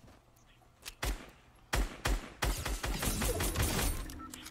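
Gunshots fire in rapid bursts in a video game.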